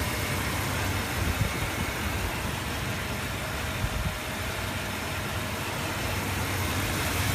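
A car engine idles with a steady low rumble close by.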